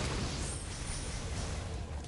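A sword clangs sharply against metal.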